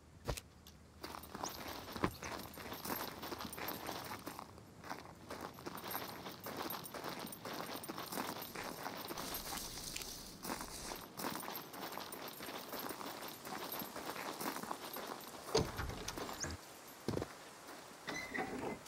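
Footsteps rustle through dry grass and brush.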